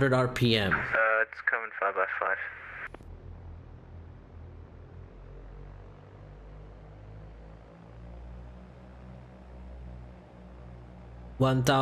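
A small plane's engine drones low and steady.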